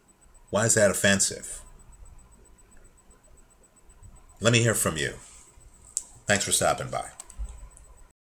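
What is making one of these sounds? A man speaks calmly and close up, in short phrases with pauses.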